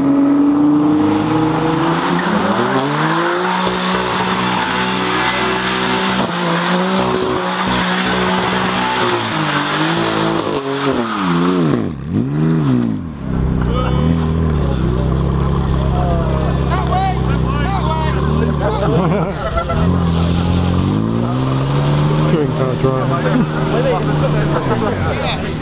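Tyres screech and squeal on tarmac.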